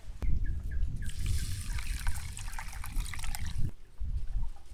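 Water pours and splashes into a bowl.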